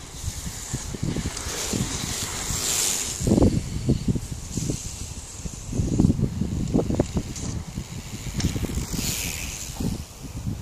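Bicycles whoosh past close by on muddy grass.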